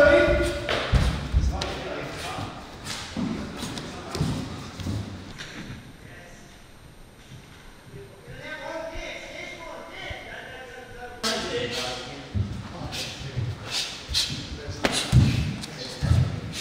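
Punches and kicks thud against padded mitts in an echoing hall.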